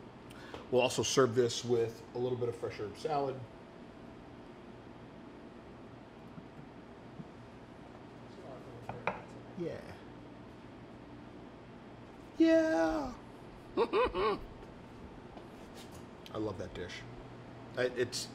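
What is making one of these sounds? A man talks calmly nearby, in short bursts with pauses.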